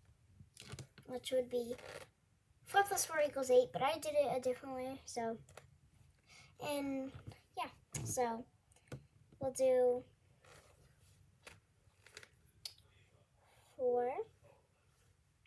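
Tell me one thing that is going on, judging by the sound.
A young girl talks close by, calmly explaining.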